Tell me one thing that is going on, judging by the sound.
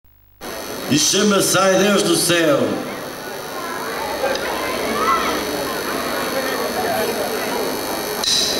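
An acoustic guitar plays through loudspeakers.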